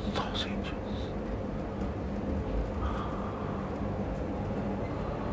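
A middle-aged man speaks close to a microphone.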